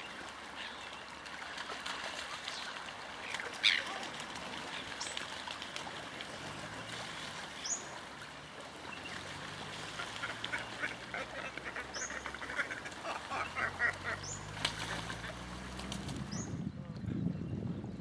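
Wings flap as birds take off and land.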